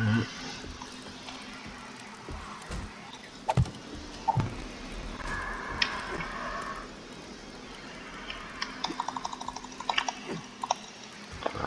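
Wooden frame blocks knock into place with short thuds.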